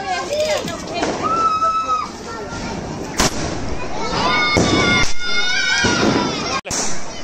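A firework rocket whistles as it shoots up.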